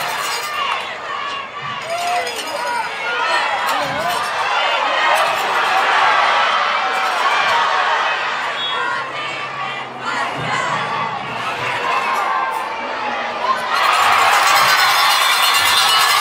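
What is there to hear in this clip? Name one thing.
A large crowd cheers and roars outdoors, swelling loudly near the end.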